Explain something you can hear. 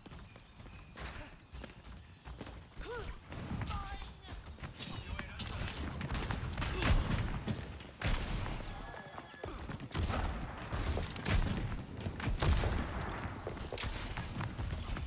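Game weapons fire and blast in quick bursts.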